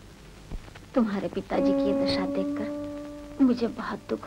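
An older woman speaks in a drawn-out, wavering voice.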